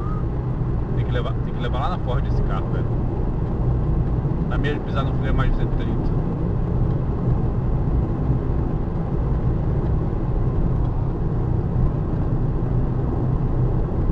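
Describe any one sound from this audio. Tyres roll steadily on a road.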